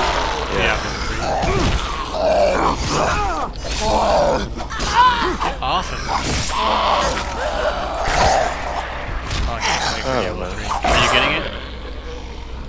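Heavy blows thud and squelch into flesh.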